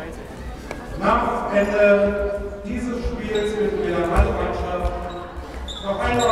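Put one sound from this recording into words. Young girls shout and call out in a large echoing hall.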